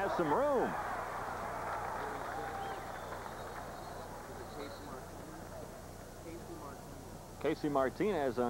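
A large crowd cheers outdoors and slowly dies down.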